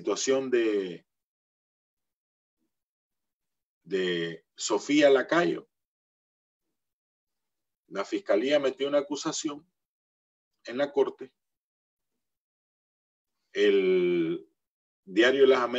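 A middle-aged man speaks calmly in short bursts over an online call.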